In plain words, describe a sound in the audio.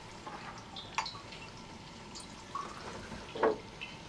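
Water pours from a glass jug into a glass.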